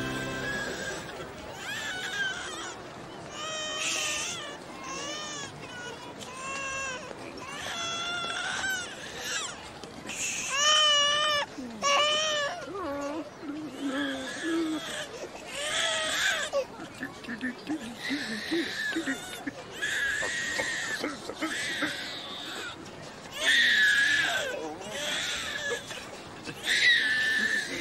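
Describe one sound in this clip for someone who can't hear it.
A baby cries and wails loudly, close by.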